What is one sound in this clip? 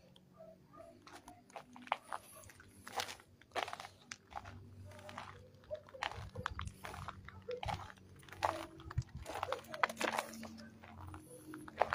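Footsteps crunch on loose rubble and gravel.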